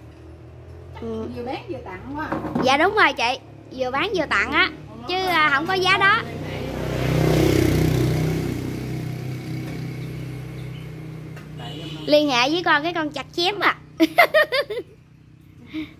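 Several women chat and laugh close by.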